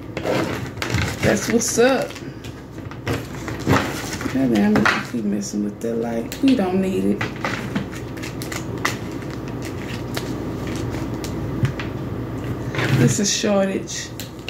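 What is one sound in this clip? Playing cards shuffle and slap softly onto a table.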